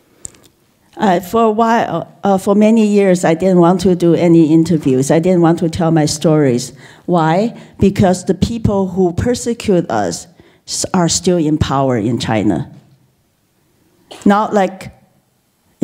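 A middle-aged woman speaks calmly through a loudspeaker.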